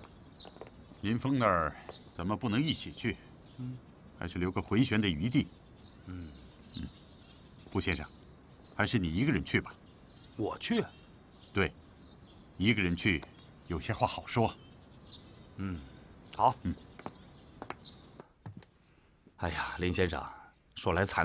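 A middle-aged man speaks firmly and calmly, close by.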